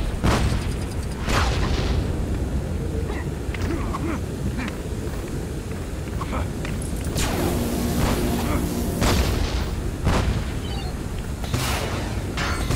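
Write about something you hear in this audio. Blasts and explosions boom again and again over a low rumbling roar.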